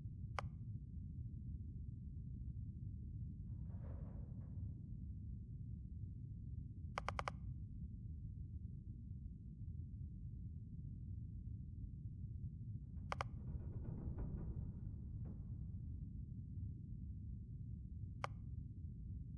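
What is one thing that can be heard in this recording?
Short electronic clicks sound as menu options are selected.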